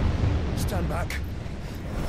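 A young man shouts urgently.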